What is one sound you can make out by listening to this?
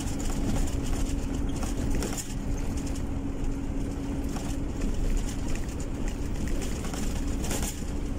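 Tyres roll over a wet road with a low rumble.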